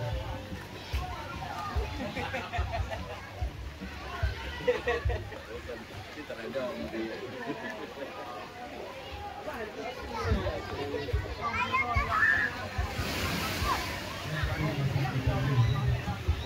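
Children and adults chatter in the distance outdoors.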